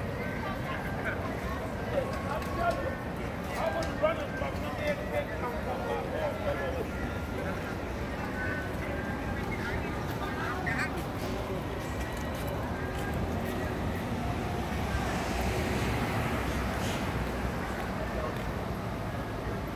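Footsteps walk along the pavement.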